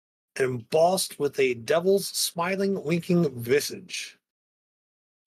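A man speaks with animation through a microphone, as on an online call.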